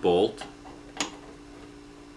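A metal part clicks sharply once.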